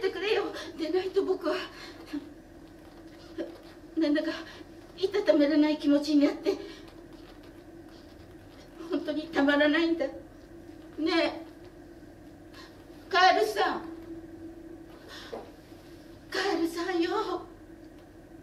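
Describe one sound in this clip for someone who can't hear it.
An older woman speaks calmly in short phrases in an echoing room.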